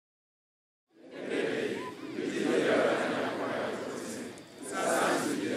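A large crowd of men chants together in unison.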